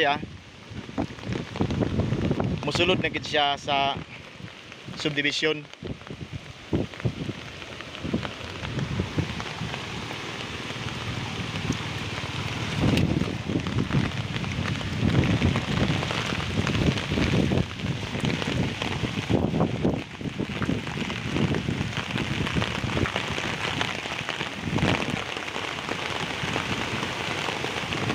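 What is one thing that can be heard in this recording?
Muddy floodwater rushes and churns.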